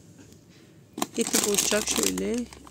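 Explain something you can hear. A plastic packet crinkles as a hand grabs it.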